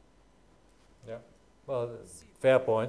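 A man speaks into a microphone in a room.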